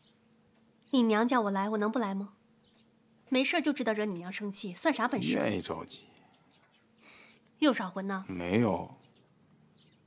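A young woman speaks sharply and firmly close by.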